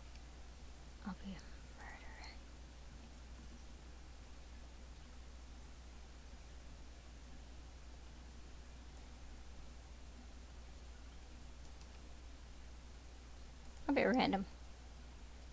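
A young woman speaks briefly and quietly into a headset microphone.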